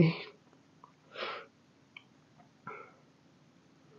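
A young woman sighs and breathes heavily close to a microphone.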